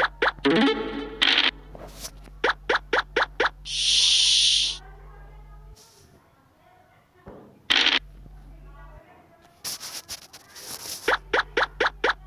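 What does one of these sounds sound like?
A game piece clicks as it hops across the board in quick steps.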